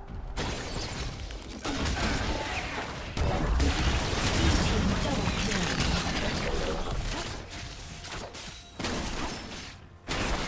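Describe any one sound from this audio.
Video game spells and attacks crackle and boom during a fight.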